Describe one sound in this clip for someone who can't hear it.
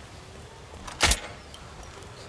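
A heavy thud sounds as a body falls to the ground.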